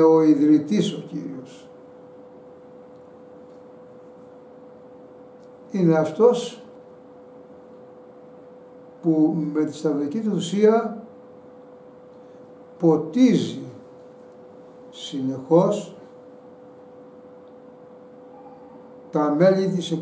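An elderly man speaks calmly and slowly, in short phrases with pauses, close to a microphone.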